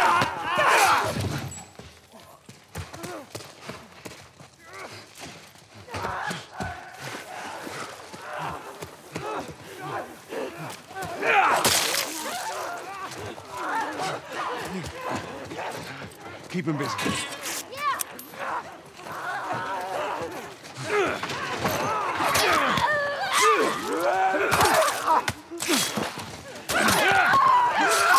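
A blade strikes with heavy, wet thuds.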